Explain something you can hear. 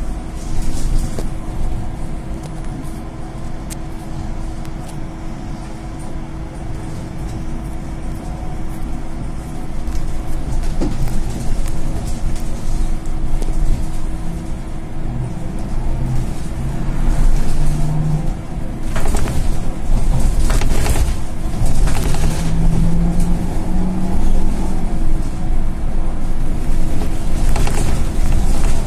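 A trolleybus motor hums and whines as it drives along.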